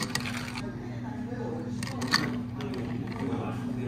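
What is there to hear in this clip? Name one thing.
Coffee pours from a small jug into a glass.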